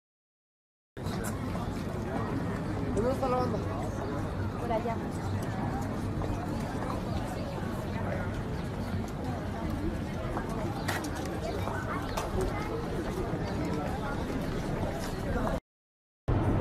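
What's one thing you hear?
A crowd murmurs outdoors in a busy street.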